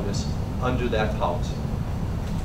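A man speaks briefly nearby.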